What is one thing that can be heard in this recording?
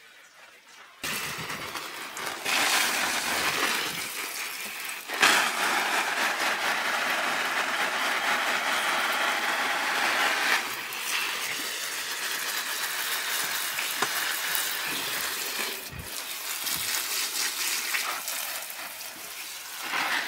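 Water sprays from a hose nozzle and patters on leaves and soil in pots.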